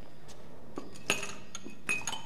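Glass jars clink together.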